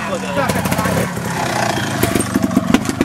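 A motorcycle engine idles and sputters close by.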